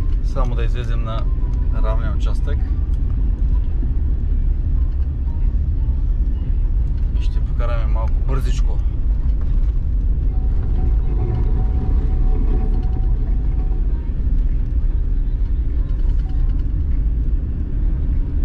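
A car engine rumbles steadily.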